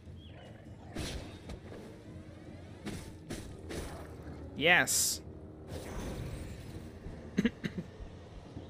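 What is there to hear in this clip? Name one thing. Sword strikes and magic blasts clash in quick bursts.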